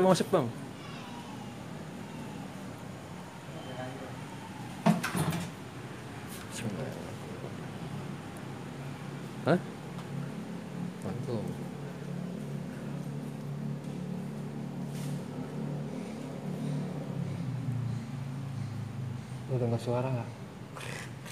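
Young men talk quietly nearby.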